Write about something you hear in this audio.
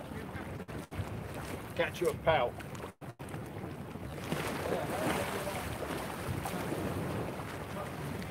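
Water laps gently against a quay wall.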